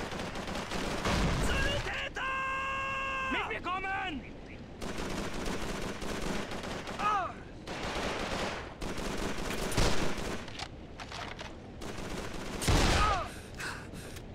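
A shotgun fires loud booming shots.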